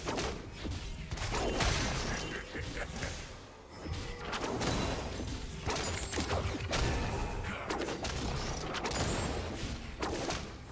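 Magic spells and blows burst and crash in quick succession during a fantasy battle.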